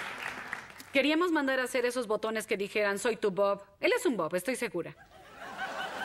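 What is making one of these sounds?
A woman chats casually into a microphone.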